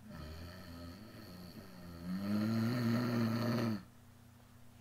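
A young woman sings a long, wavering note close by.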